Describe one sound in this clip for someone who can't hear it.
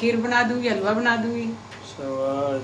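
A woman speaks close up with animation.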